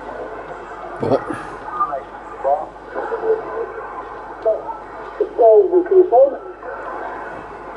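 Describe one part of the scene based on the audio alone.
Warbling whistles and garbled sounds come from a radio as it is tuned.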